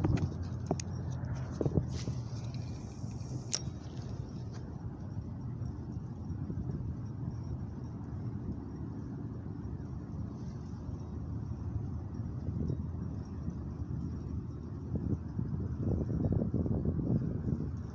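Wind blows steadily and rumbles across the microphone outdoors.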